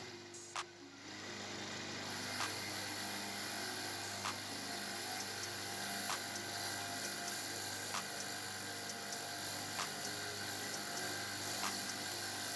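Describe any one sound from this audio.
A spinning wire brush scrapes and hisses against metal.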